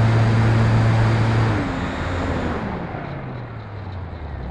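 A model plane's electric motor whines and winds down in pitch.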